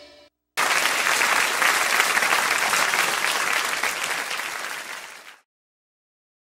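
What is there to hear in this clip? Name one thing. A crowd applauds loudly in a large hall, then the clapping stops.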